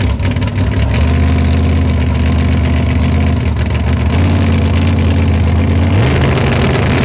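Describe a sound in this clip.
A drag racing engine revs up and holds a steady, higher roar.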